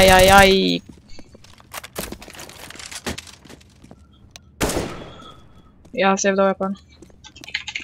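Footsteps patter on hard ground.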